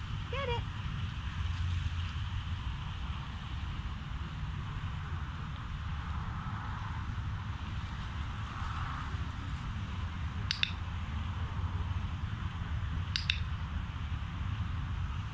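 Wind rumbles steadily outdoors.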